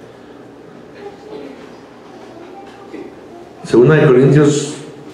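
A man speaks into a microphone, quietly at first, then loudly.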